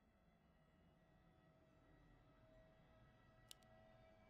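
Weapons clash faintly in a small battle.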